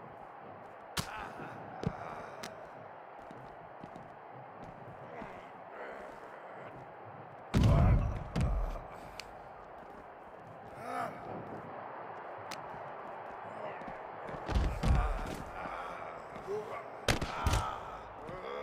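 Bodies slam down hard with heavy thuds.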